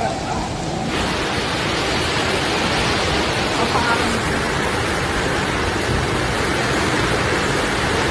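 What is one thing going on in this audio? Floodwater flows steadily past.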